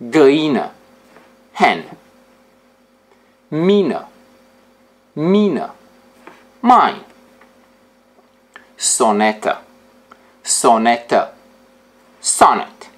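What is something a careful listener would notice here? A young man speaks clearly and expressively into a close microphone, saying single words with pauses between them.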